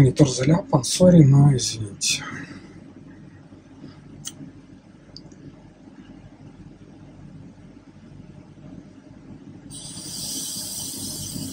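A fingertip taps lightly on a touchscreen.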